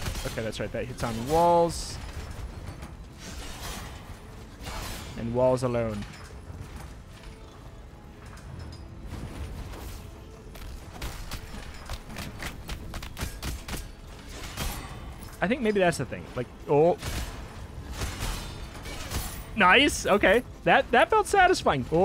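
Weapon swings whoosh and strike.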